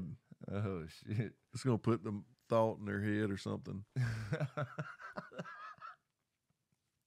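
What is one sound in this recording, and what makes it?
A man laughs heartily close to a microphone.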